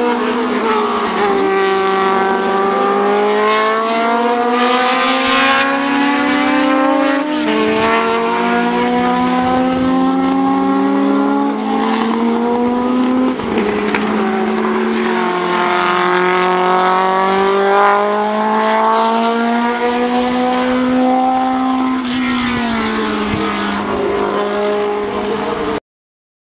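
A racing car engine roars loudly, revving up and down as it shifts gears.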